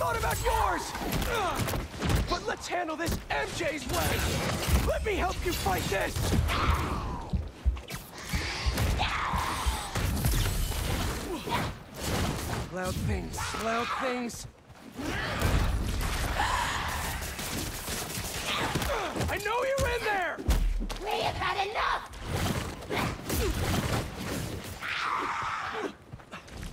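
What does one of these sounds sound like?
Blows and punches land with heavy thuds.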